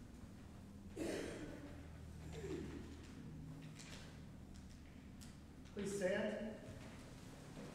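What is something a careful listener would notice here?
A man speaks briefly over a microphone in an echoing hall.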